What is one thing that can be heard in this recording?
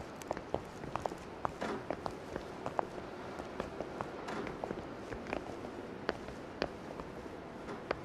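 Footsteps clack on hard pavement.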